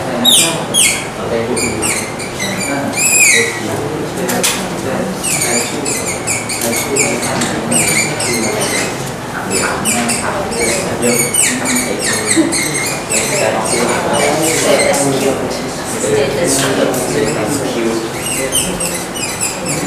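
A marker squeaks against a whiteboard in short repeated strokes.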